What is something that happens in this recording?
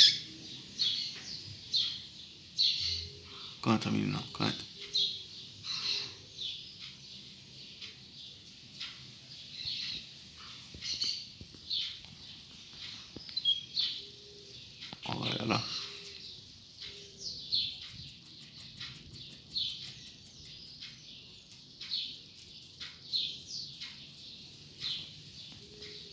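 A caged bird sings short, high chirps again and again.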